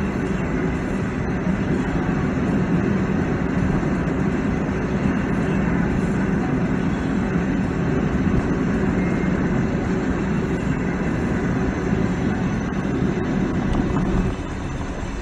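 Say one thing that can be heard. Tyres roar on a wet road.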